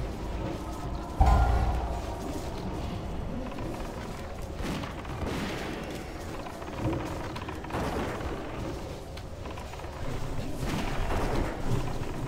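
Spell effects and weapon hits clash and crackle in a busy fantasy battle.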